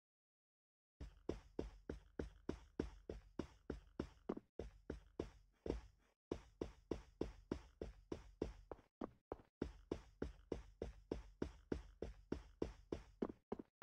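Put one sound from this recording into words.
Quick footsteps run across a hard stone floor.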